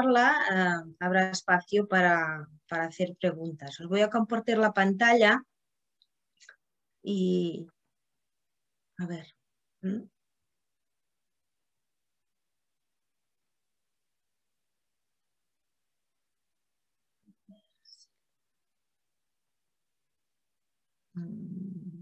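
A middle-aged woman speaks calmly over an online call, with pauses.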